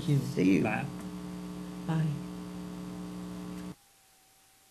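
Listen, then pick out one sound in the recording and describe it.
An acoustic guitar chord rings and sustains, then cuts off abruptly.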